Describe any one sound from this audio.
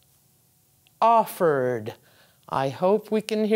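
An older woman speaks clearly and deliberately into a microphone, as if teaching.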